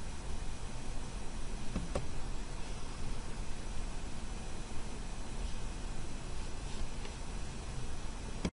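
A woman speaks calmly and close into a microphone.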